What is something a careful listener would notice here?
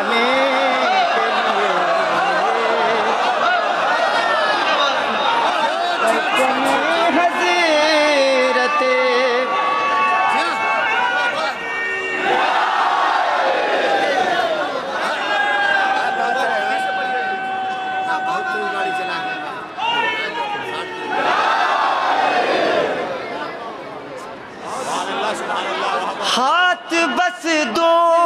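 A man sings with feeling through loudspeakers in a large echoing space.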